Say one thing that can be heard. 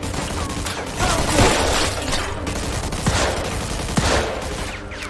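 Gunshots ring out and echo around a large hall.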